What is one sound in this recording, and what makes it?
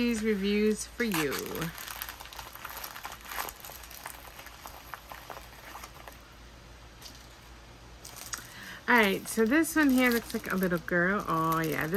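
A plastic wrapper crinkles as it is rolled and handled.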